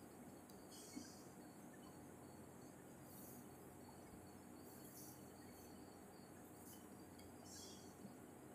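A compass point scratches lightly across paper.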